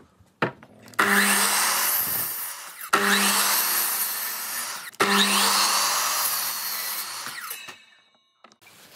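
A miter saw whines loudly as it cuts through wood.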